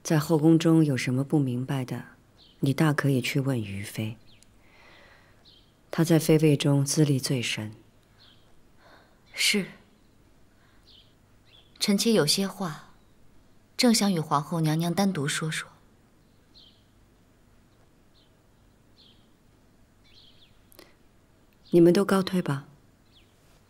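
A woman speaks calmly and slowly.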